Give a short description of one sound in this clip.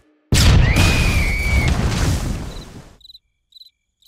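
A cartoon creature lets out a loud, shrill scream.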